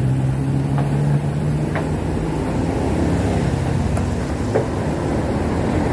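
A motorbike engine hums as it passes.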